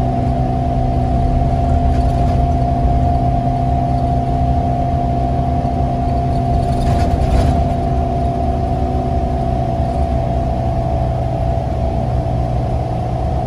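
A bus engine hums and drones steadily from inside the bus.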